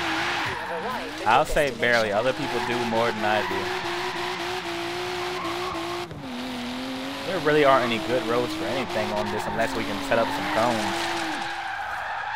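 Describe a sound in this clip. Tyres screech loudly as a car drifts.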